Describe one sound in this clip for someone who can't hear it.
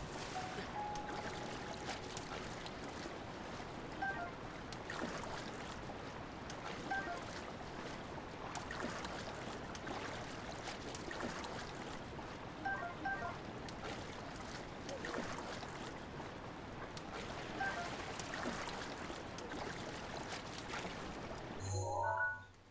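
Water splashes steadily as a game character swims.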